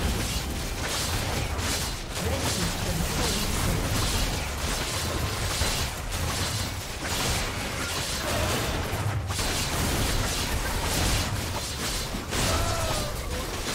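Game characters strike a large monster with thudding blows.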